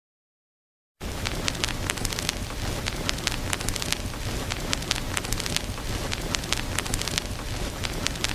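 A stylus crackles and pops on a spinning vinyl record.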